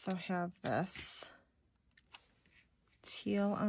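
Paper rustles softly as a sticker is handled and pressed down.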